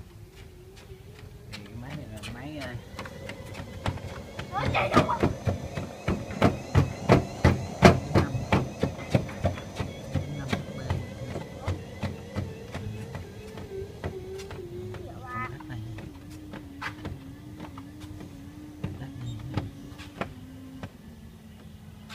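A treadmill motor whines steadily, its pitch slowly dropping.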